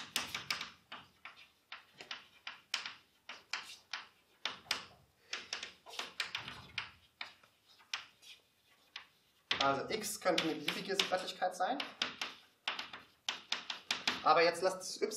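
Chalk taps and scrapes on a blackboard in quick strokes.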